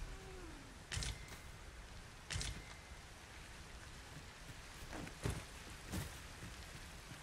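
Footsteps thud on grass and rock.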